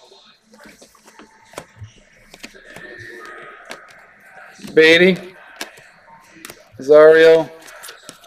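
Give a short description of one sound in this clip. Trading cards rustle and flick in a man's hands.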